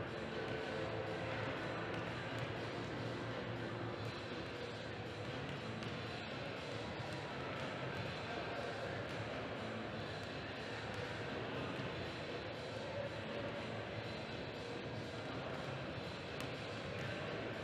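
Basketballs bounce on a hard floor.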